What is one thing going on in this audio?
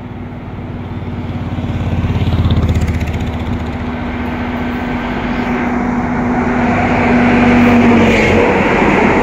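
A diesel locomotive engine drones as it approaches and passes.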